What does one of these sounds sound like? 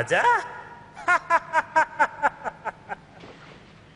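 A middle-aged man laughs heartily.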